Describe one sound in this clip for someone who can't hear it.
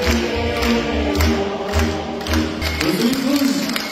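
A folk band plays lively music in a large hall.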